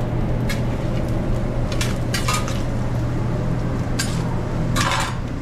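Metal spatulas scrape and clatter against a griddle.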